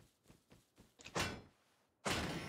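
A metal barrel is struck with a hard clang.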